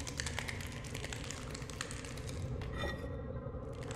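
Small quick footsteps patter on a hard floor.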